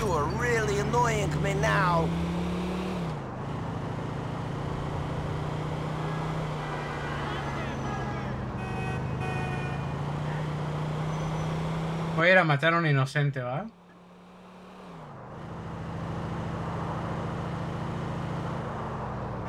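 A car engine hums steadily as it drives.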